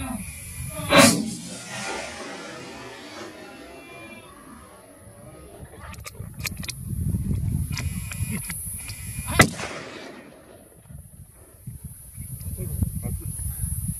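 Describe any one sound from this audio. Wild boars run through dry grass and brush.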